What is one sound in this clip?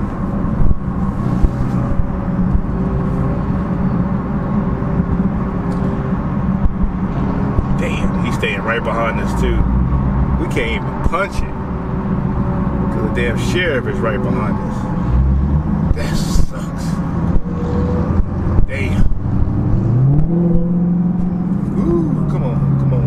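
Tyres roar on the highway.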